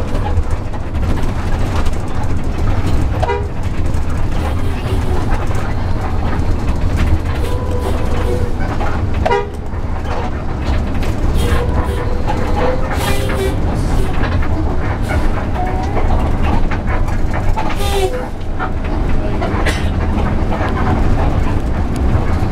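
A heavy engine rumbles steadily as a vehicle drives along a road.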